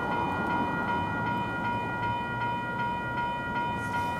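A freight train rolls slowly along the tracks with a low rumble.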